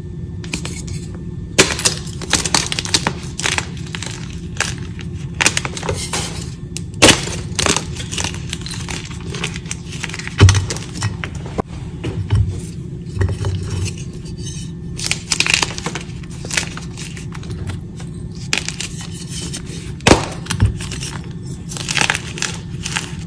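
Hands crumble dry chalk blocks, which crack and snap apart.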